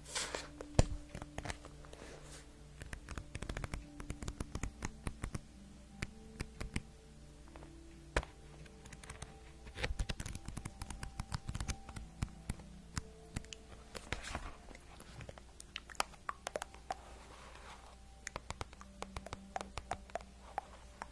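Paper pages rustle and crinkle close to a microphone.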